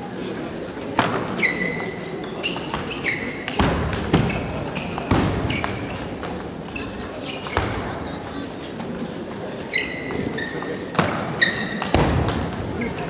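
A ping-pong ball clicks sharply back and forth between paddles and the table in an echoing hall.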